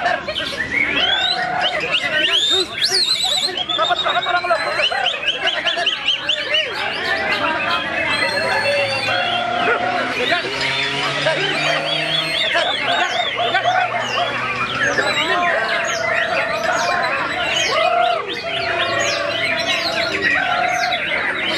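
A white-rumped shama sings a rich, varied song of whistles and trills.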